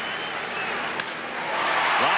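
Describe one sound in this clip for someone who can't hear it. A baseball bat cracks sharply against a ball.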